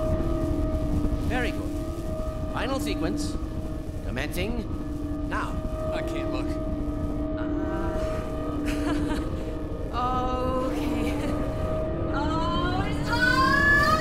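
A large machine hums steadily.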